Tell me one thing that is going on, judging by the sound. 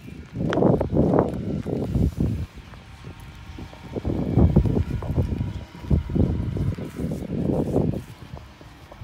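Footsteps crunch and rustle on gravel and grass close by.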